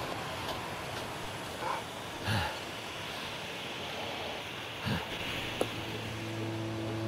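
A flare burns with a steady fizzing hiss.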